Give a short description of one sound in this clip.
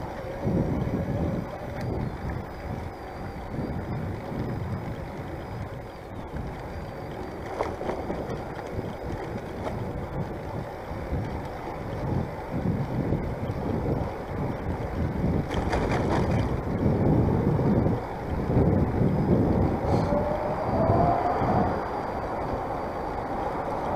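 Wind buffets and rumbles against the microphone outdoors.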